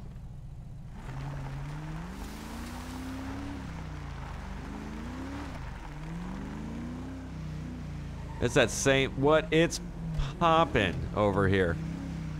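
A car engine revs up and down as the car accelerates.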